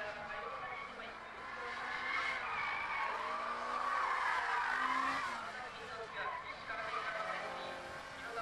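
A race car engine roars loudly, revving up and down as the car speeds through bends.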